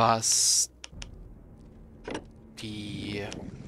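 A game menu clicks shut.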